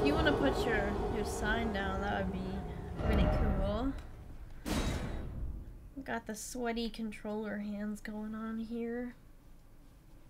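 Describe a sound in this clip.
A young woman talks with animation into a headset microphone.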